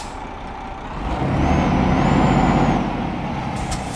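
A truck engine revs up loudly, then settles.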